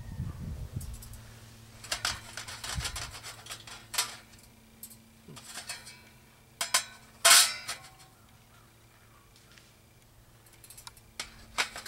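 A metal grill rattles as it is set down.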